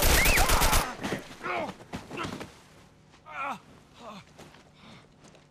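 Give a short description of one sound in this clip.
A man groans and cries out in pain.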